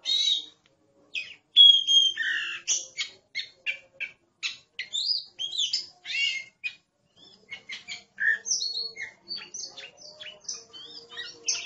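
A songbird sings a varied, fast string of whistles and chirps close by.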